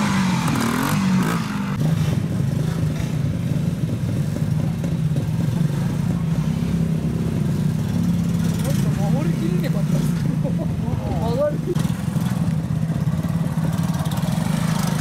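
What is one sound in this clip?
A motorcycle engine putters and revs close by.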